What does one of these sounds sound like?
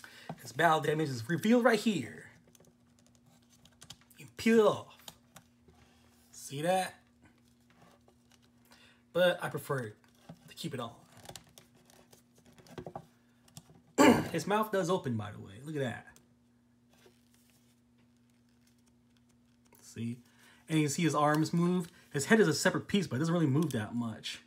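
Hands handle a plastic toy figure, its joints clicking softly.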